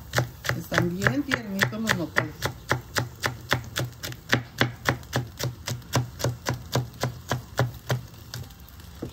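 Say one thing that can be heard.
A knife chops quickly and steadily on a cutting board.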